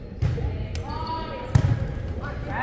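A volleyball is struck with sharp slaps that echo around a large hall.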